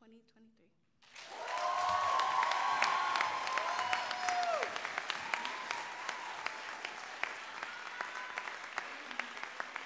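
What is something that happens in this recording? A crowd applauds loudly in an echoing hall.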